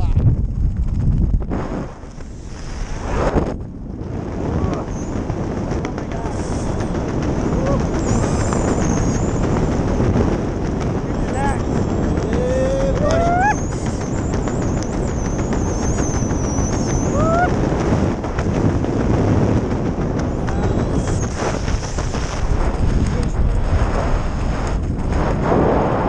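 Strong wind roars and buffets loudly outdoors.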